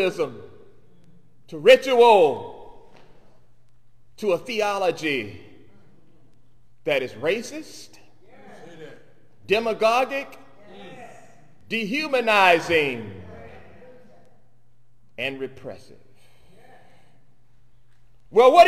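A man preaches through a microphone in short phrases with pauses.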